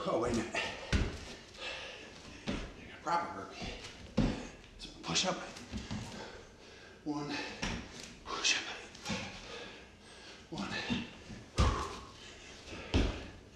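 Feet thud on a wooden floor as a man jumps.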